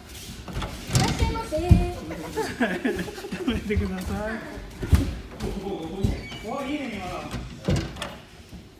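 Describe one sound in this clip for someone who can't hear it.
Bodies thud onto padded mats as people are thrown.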